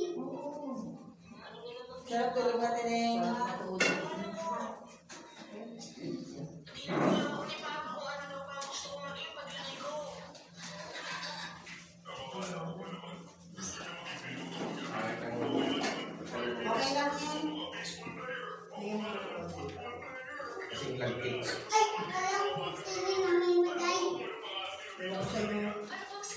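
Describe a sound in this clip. A group of men and women talk and laugh together close by.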